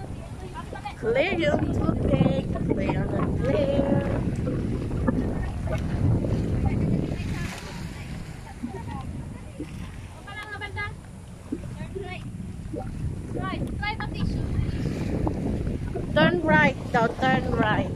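Young women talk and call out to each other outdoors.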